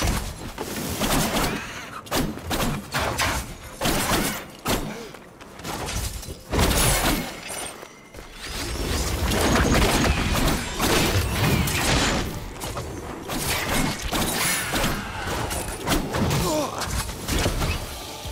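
Blades swish and clash in quick, repeated strikes.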